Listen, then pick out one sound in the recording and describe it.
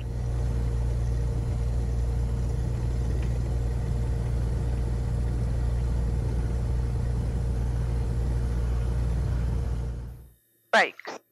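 An airplane engine rumbles steadily while the plane taxis.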